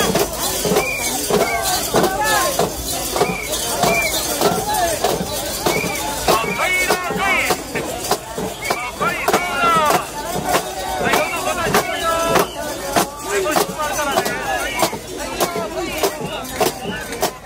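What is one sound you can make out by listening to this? Bells on a portable shrine jingle and clank as it sways.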